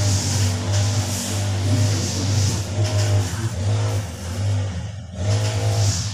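A trowel scrapes wet mortar.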